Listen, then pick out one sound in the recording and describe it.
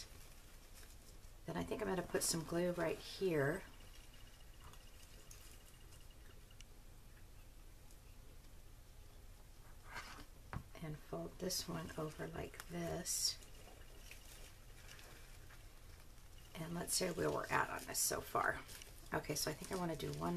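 Fabric rustles softly as it is folded and tucked.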